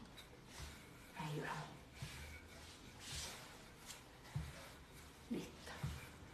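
A wooden rolling pin thuds softly as it rolls dough on a counter.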